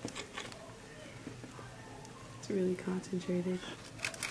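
A knife scrapes through soft dough on crinkling foil.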